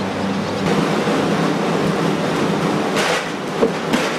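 Glass bottles rattle in plastic crates on a hand trolley.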